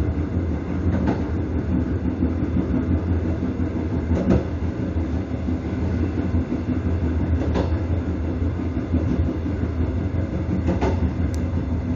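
Train wheels click over rail joints at regular intervals.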